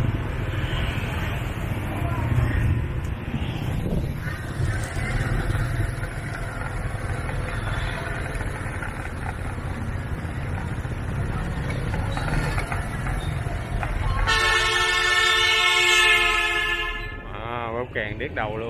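A motorbike engine hums steadily while riding.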